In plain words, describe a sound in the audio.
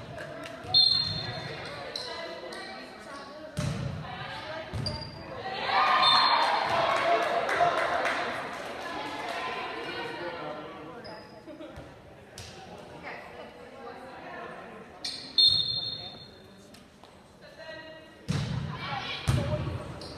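A volleyball is hit with sharp thuds in a large echoing gym.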